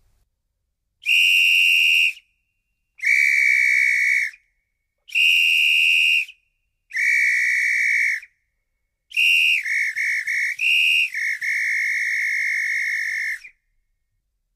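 A high whistle blows in loud, steady blasts, switching between two pitches.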